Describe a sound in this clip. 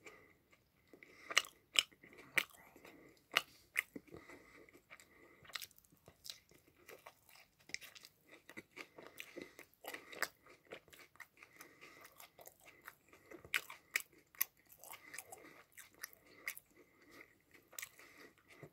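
A young man chews food with loud, wet crunching close to a microphone.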